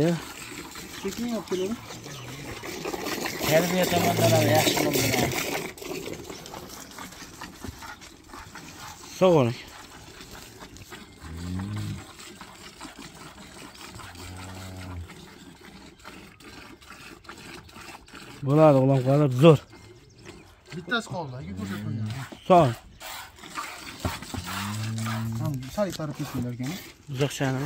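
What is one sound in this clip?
Milk squirts and hisses into a bucket.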